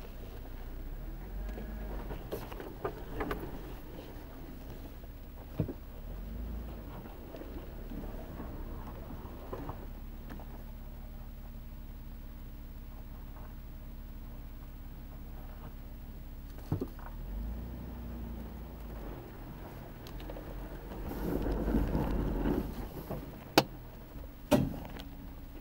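A car engine idles and rumbles low nearby.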